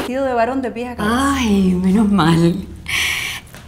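An elderly woman laughs loudly.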